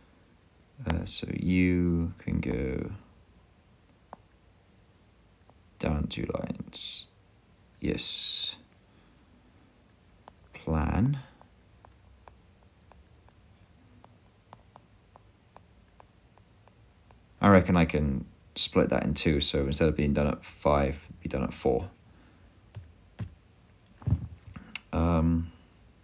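A man speaks calmly, close to a microphone, in short bursts.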